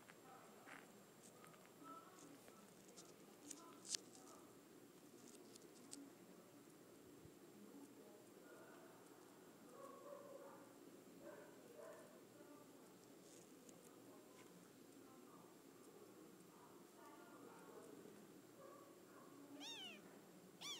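Soft fabric rustles as kittens squirm about.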